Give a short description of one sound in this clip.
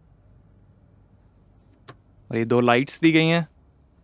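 A small switch clicks.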